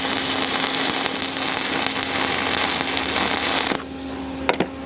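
A welding arc crackles and hisses steadily.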